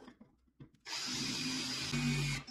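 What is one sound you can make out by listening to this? A drill whirs steadily as it bores into metal.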